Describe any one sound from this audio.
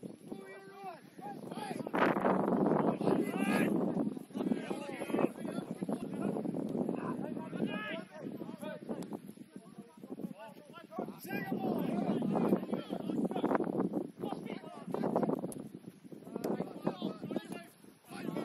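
Young men shout and call to each other across an open playing field.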